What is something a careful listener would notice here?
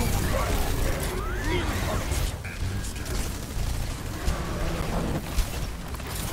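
Gunfire and energy blasts crackle rapidly in a video game battle.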